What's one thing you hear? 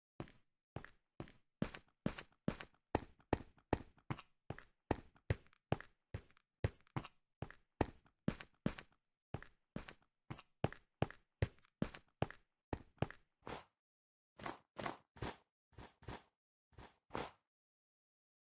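Dull digging thuds repeat quickly on dirt.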